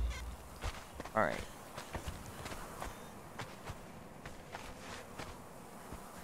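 Footsteps crunch on sand.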